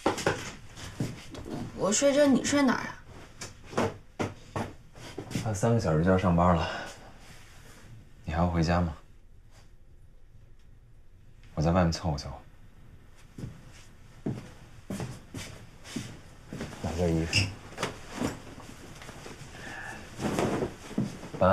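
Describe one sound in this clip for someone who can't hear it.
Clothes rustle as a young man rummages through items.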